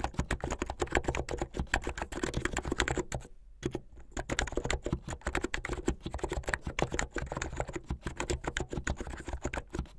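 Fingers type quickly on a mechanical keyboard, with rapid clacking keystrokes.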